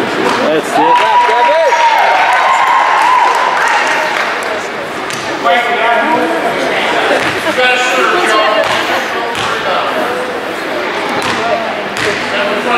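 A crowd of people chatters and calls out in a large echoing gym.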